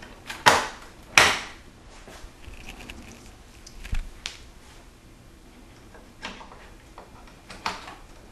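Plastic clicks and snaps as a memory module is pushed into its slot.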